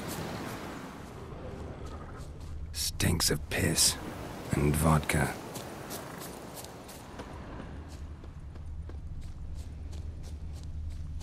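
Footsteps rustle through tall grass and bushes.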